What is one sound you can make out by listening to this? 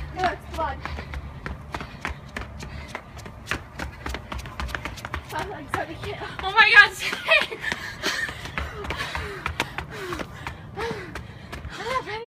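Sneakers patter quickly up stone steps outdoors.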